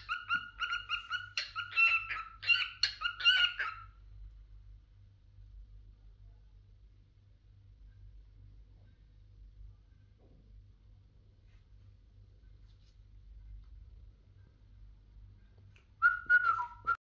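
A cockatiel whistles a shrill, repeated tune close by.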